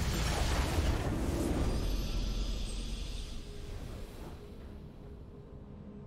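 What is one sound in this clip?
A game fanfare swells for a win and fades.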